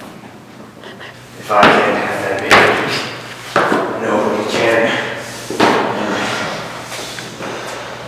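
Footsteps thud up stairs.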